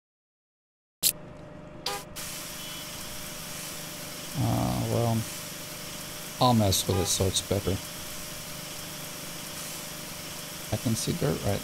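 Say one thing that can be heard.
A pressure washer hisses steadily as it sprays.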